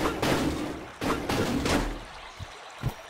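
A sword whooshes through the air in a few quick swings.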